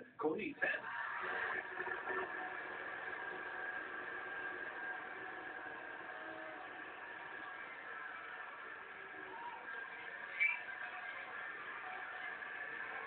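A man speaks with animation into a microphone, heard through a television speaker.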